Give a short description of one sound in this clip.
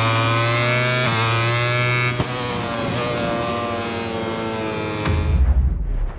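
A motorcycle engine screams at high revs, shifting gears as it races.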